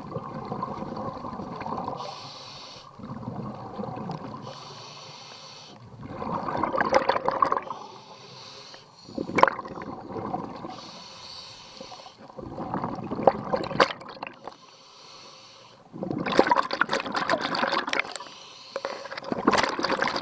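Exhaled air bubbles burst out in loud gurgling rushes underwater.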